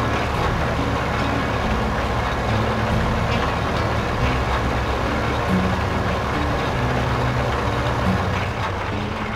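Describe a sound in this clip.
A tractor engine hums steadily.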